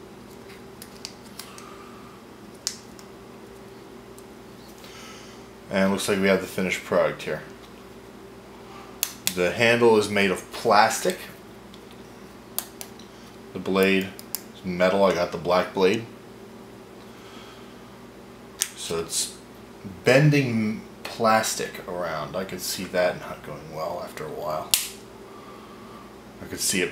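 Small plastic parts click and snap as they are folded by hand.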